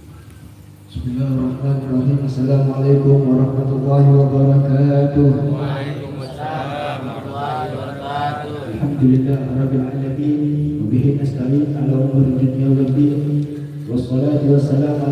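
A young man chants melodically into a microphone, loud through a loudspeaker.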